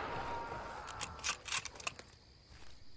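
A rifle bolt clicks as it is worked.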